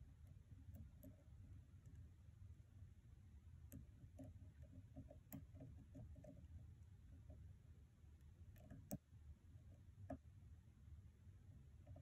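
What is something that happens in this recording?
Small metal picks click and scrape inside a lock.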